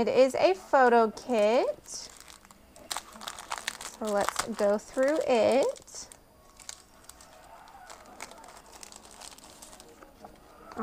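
A plastic sleeve crinkles softly as hands handle it.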